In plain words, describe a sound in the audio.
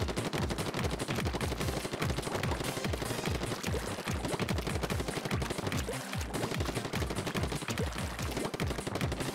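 An ink gun fires rapidly with wet splattering splashes.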